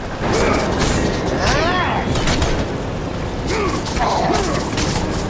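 Chained blades whoosh through the air in quick swipes.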